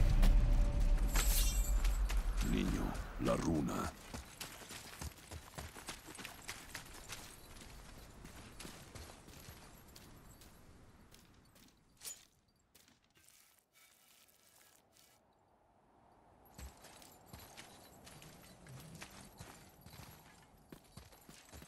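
Heavy footsteps tread on grass and stone.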